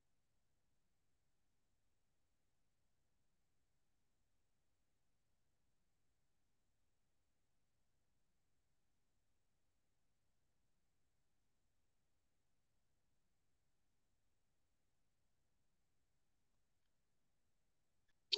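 A machine hums steadily and quietly.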